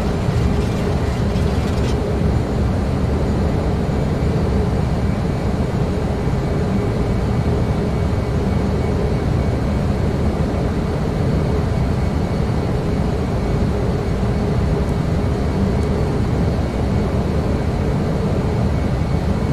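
Jet engines roar steadily from inside a cockpit in flight.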